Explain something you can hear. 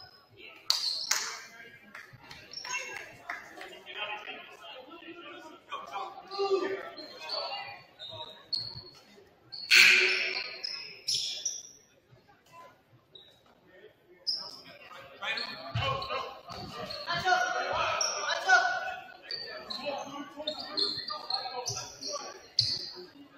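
Players call out to each other in an echoing gym.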